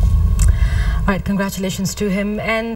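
A woman speaks clearly into a microphone.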